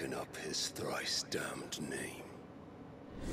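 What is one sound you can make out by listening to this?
A man speaks in a deep, gravelly voice with building anger.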